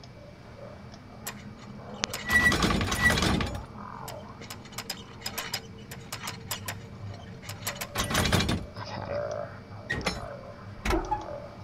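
Metal gears click and clank as they turn.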